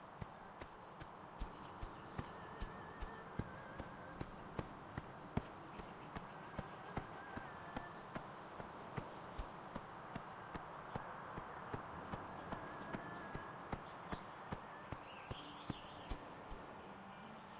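Running footsteps patter in a quick, even rhythm.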